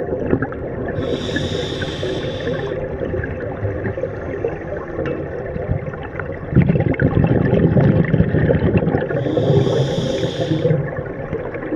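A scuba regulator hisses as a diver inhales underwater.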